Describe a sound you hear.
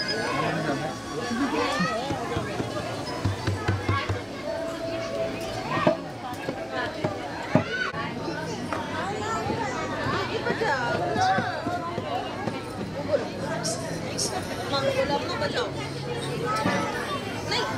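A crowd of men and women murmur and chatter nearby.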